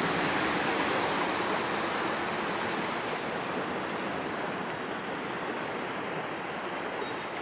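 A shallow stream rushes and gurgles over stones nearby.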